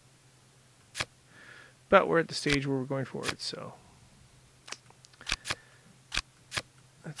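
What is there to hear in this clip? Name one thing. Playing cards click softly as they are moved into place.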